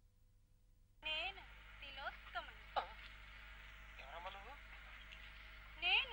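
A man talks with animation on a phone, close by.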